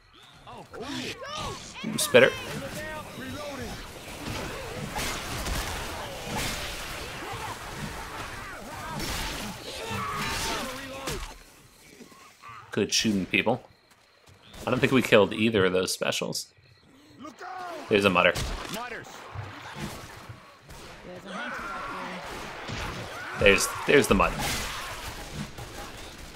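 Zombies snarl and growl close by.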